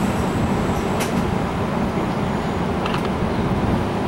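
Metal squeaks and clicks sharply under a passing train.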